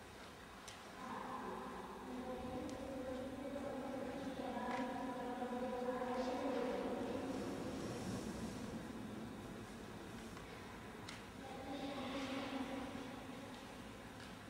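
A young woman speaks calmly in a slow, clear voice, in an echoing room.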